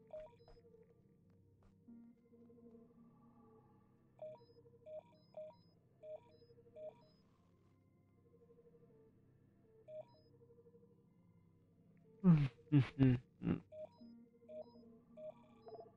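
Short electronic menu blips sound repeatedly.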